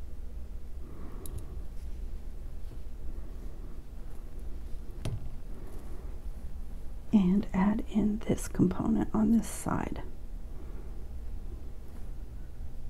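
Small metal jewellery parts clink softly as they are handled.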